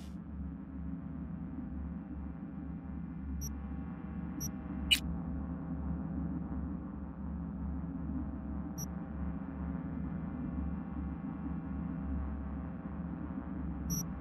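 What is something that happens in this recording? Low ambient synth music drones steadily.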